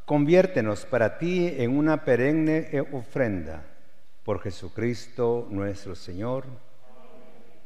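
A man chants in a sung voice through a microphone, in a reverberant room.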